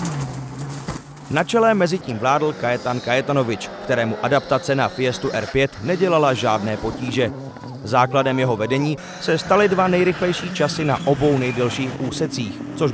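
A rally car engine revs loudly and rises and falls as the car speeds past.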